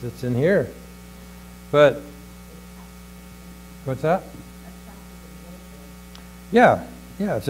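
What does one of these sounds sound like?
An older man speaks in short, emphatic bursts through a microphone, with long pauses between.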